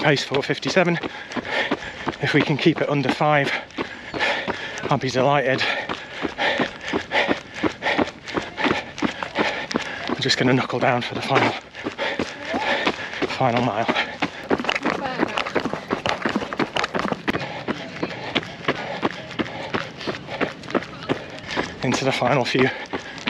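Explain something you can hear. Footsteps patter steadily on a gravel path.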